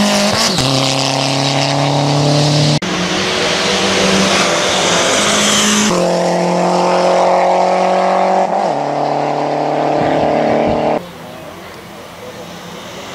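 A turbocharged four-cylinder hill-climb race car accelerates at full throttle through the bends.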